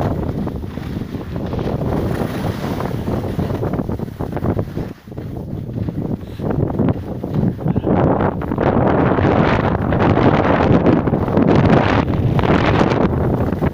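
Wind rushes loudly past, outdoors.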